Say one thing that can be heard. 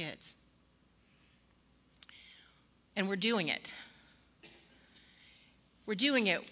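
A woman speaks calmly into a microphone, heard through loudspeakers in a large echoing room.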